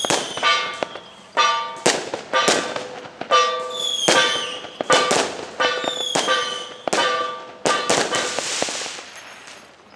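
A small gong is struck again and again, ringing brightly.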